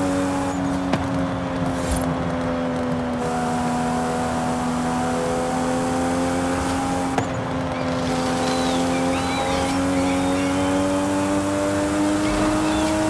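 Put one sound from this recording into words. A sports car engine hums steadily at high speed, its pitch slowly rising.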